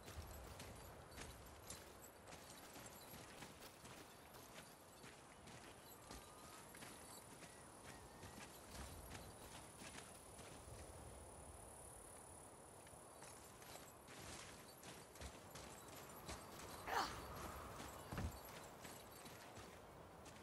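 Heavy footsteps crunch on rock.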